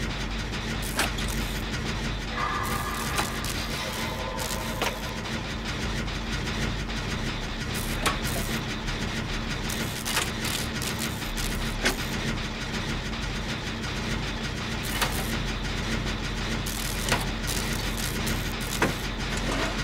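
Sharp mechanical clicks ring out now and then.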